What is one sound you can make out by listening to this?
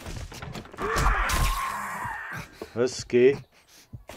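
A knife stabs into flesh with wet thuds.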